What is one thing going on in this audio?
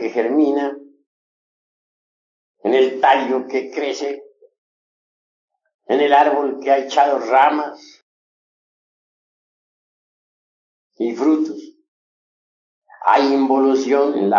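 A man speaks calmly and clearly in short phrases with pauses between them, heard through a microphone.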